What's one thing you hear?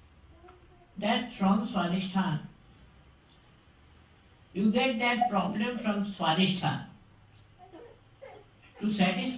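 An elderly woman speaks calmly into a microphone, in short phrases with pauses.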